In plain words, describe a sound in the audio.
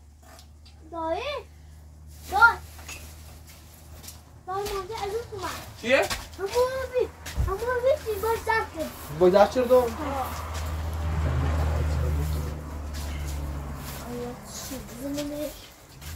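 Young children talk and call out excitedly nearby.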